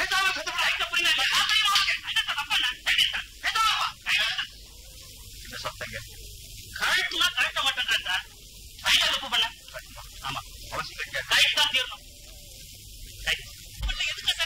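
A man speaks forcefully and angrily, close by.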